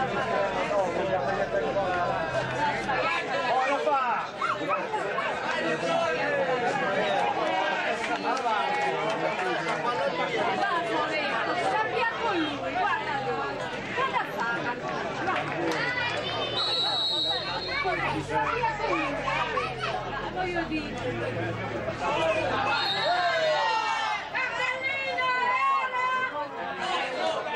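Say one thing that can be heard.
A crowd of spectators shouts and chatters outdoors.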